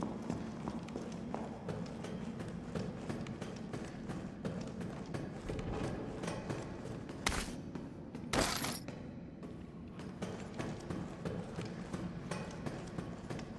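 Footsteps clang on metal stairs and a metal walkway.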